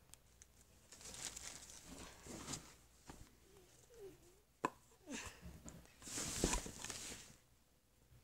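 Soft toys rustle and brush against each other as they are handled.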